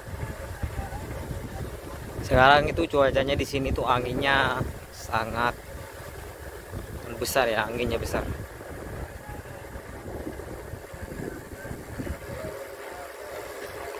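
Bicycle tyres roll steadily along a paved road.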